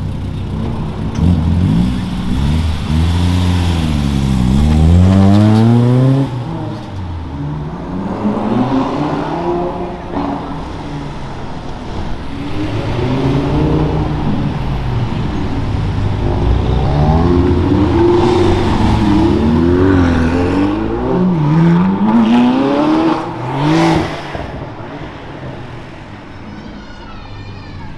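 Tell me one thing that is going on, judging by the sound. Street traffic rumbles past outdoors.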